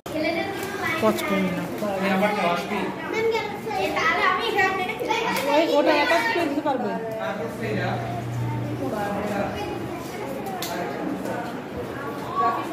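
A young woman speaks warmly to children close by.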